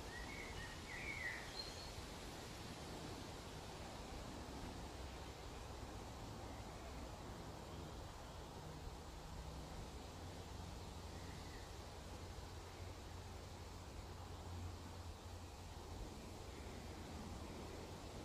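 Wind rumbles against a microphone outdoors.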